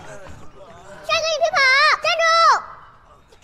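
A young girl shouts loudly, close by.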